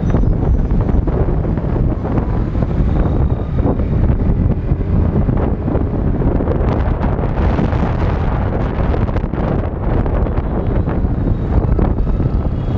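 Wind buffets loudly against a moving rider.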